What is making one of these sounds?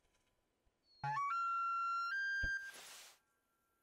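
A hunting call sounds in a few rising, stepped tones.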